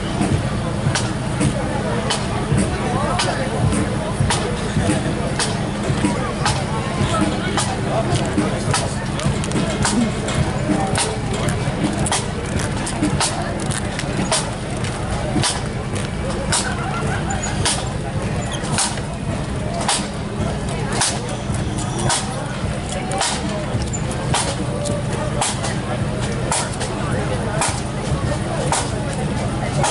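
Snare drums beat a steady marching rhythm.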